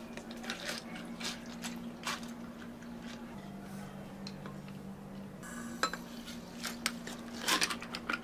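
Milky liquid pours and splashes over ice.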